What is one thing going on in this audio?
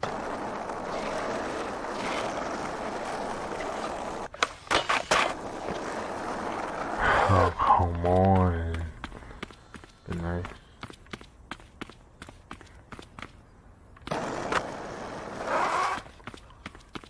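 Skateboard wheels roll and rumble over rough pavement.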